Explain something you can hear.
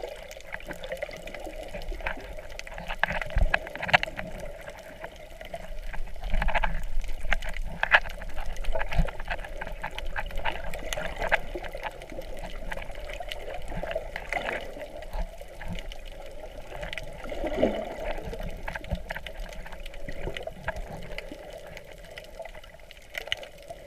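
Water swishes and rumbles in a muffled way underwater.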